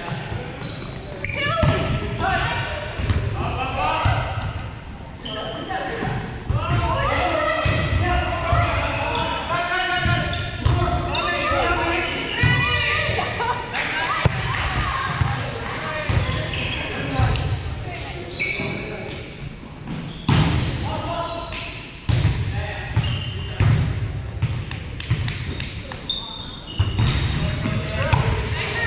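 A volleyball is struck with hands, echoing in a large gym.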